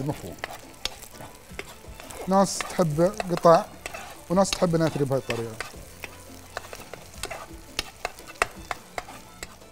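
Eggs sizzle in a hot pan.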